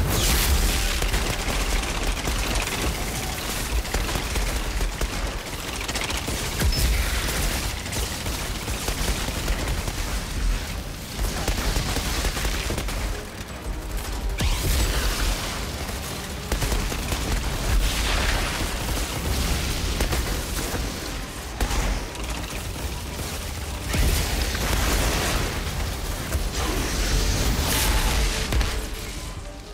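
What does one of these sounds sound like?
Gunfire and explosions rattle and boom without pause.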